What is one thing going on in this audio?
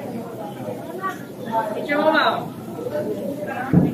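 Young women talk and chatter nearby.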